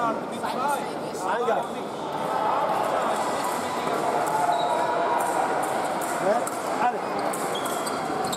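Many voices murmur and call out in a large echoing hall.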